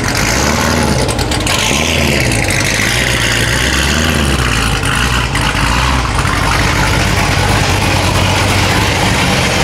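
A sports car engine idles with a loud, deep rumbling exhaust.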